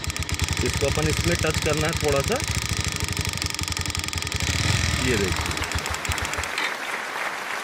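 A motorcycle engine idles with a rapid, steady putter.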